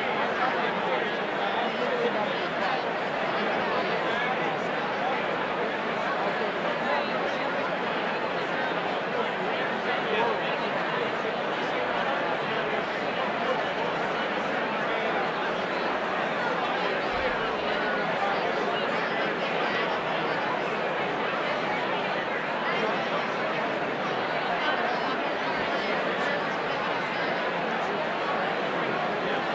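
A large crowd chatters loudly in a big echoing hall.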